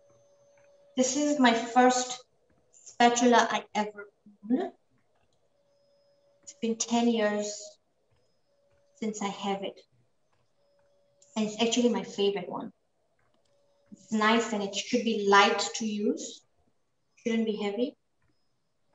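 A woman speaks calmly and clearly into a close microphone, in short bursts.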